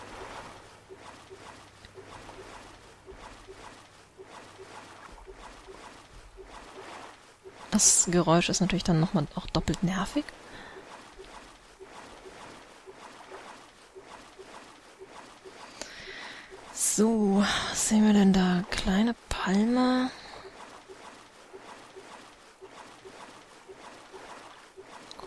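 Small waves lap gently.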